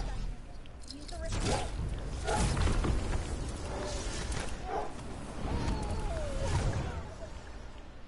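Wind rushes past a falling figure and then slowly fades.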